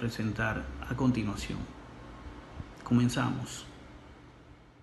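An older man speaks emphatically, close to a microphone.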